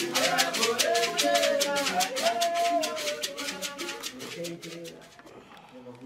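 A woman sings loudly nearby.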